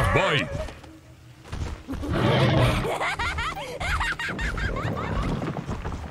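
A large creature's heavy footsteps thud on stone.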